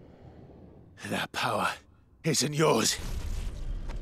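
A young man shouts angrily, close by.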